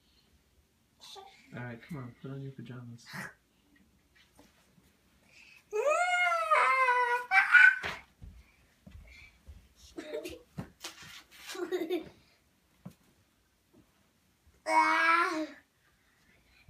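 A young child babbles and squeals with excitement close by.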